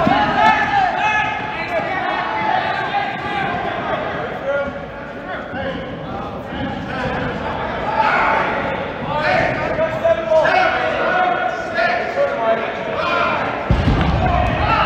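Sneakers squeak on a hard court in a large echoing hall.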